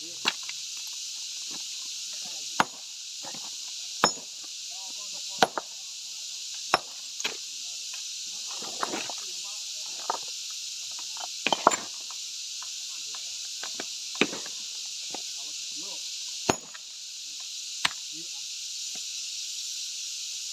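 Chunks of stone clatter and shift as they are handled.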